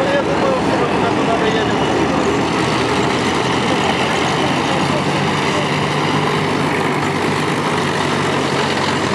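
Steel tracks clank and squeal on asphalt.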